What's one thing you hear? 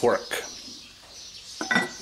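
A lid clatters onto a pot.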